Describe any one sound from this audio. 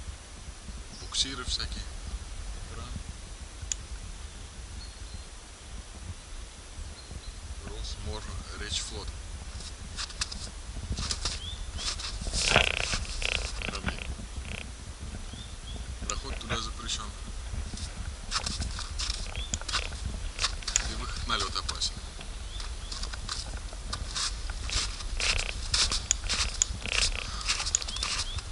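A young man talks close to the microphone, calmly.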